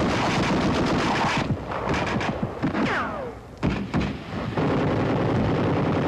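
An explosion booms across a hillside.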